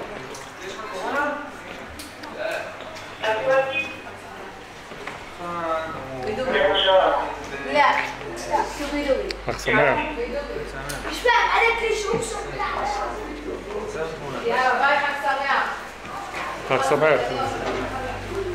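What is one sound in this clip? A young man talks in a friendly way close by.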